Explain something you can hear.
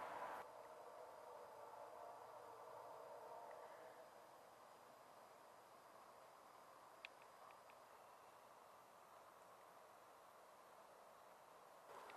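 A freight train rumbles faintly in the distance.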